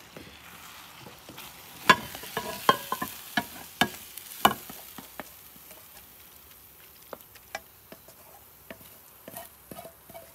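A wooden spoon scrapes food from a metal pan into a dish.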